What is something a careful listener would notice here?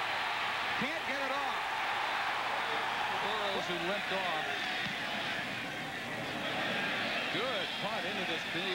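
A large crowd roars and cheers outdoors.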